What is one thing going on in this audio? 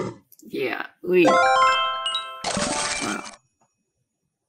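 A bright chiming victory jingle plays from a game.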